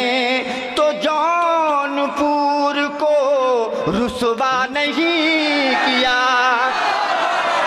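A man recites loudly and with feeling into a microphone, heard through loudspeakers.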